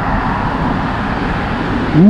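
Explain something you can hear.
A car drives along a nearby road.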